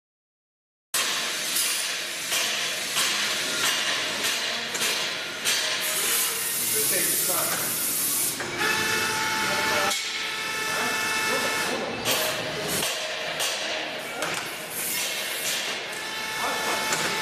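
A filling machine hums and clatters as it runs.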